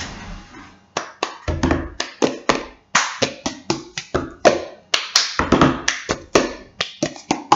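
Hands slap and tap a paper cup on a wooden table in a quick rhythm.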